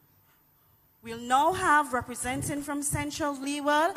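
A young woman sings loudly through a microphone.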